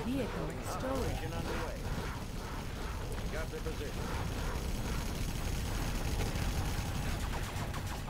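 Laser weapons zap in quick bursts.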